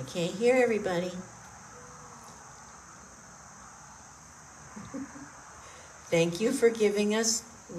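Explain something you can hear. An elderly woman speaks calmly through a headset microphone.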